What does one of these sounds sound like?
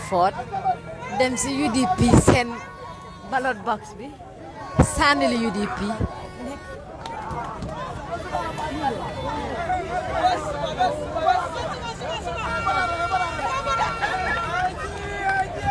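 A crowd sings and chants loudly outdoors.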